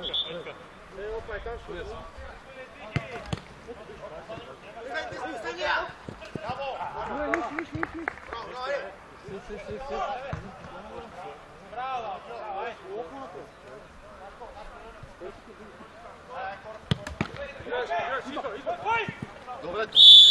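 Men shout and call to each other across an open-air pitch.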